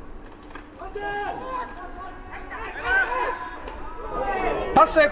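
Young men shout and cheer outdoors.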